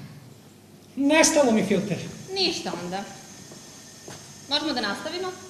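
A young woman speaks loudly and with animation in a large hall.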